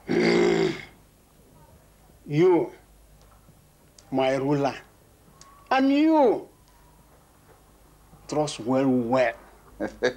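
An elderly man speaks slowly in short, drawn-out phrases.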